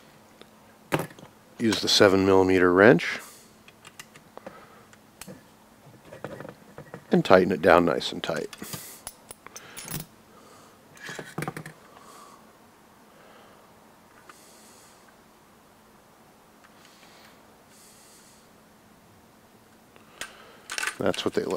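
Plastic parts click and knock together as they are handled.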